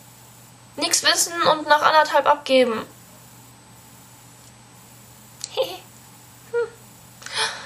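A young woman speaks close by, in a casual, expressive manner.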